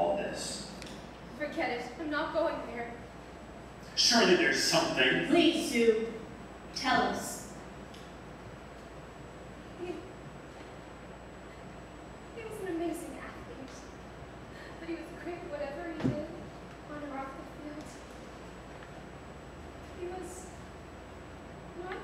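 A woman speaks slowly and with feeling, pausing often.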